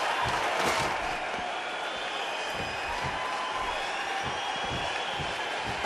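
A large crowd cheers and roars throughout, filling a big arena.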